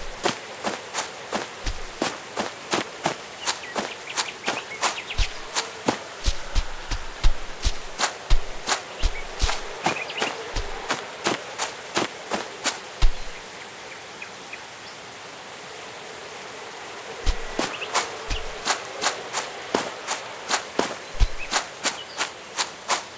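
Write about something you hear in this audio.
Footsteps swish steadily through tall wet grass.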